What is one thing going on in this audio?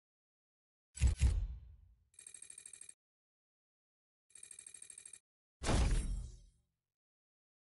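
Short electronic menu beeps sound a few times.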